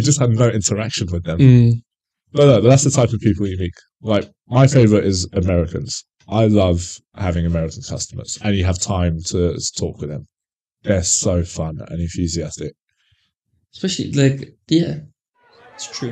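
A man talks with animation into a microphone close by.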